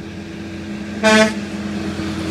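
A truck horn blasts once, briefly and loudly.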